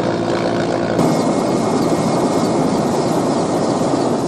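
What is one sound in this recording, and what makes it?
A large fire roars.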